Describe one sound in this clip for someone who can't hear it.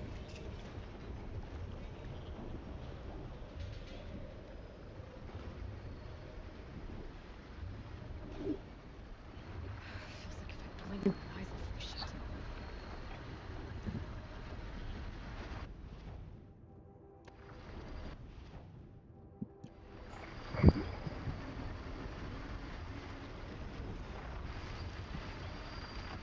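Wind howls in a snowstorm.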